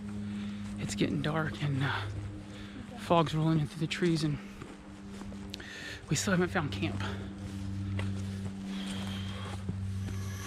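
A man talks calmly close by, outdoors.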